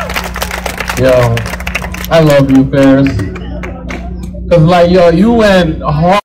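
A man sings loudly through a microphone and loudspeakers outdoors.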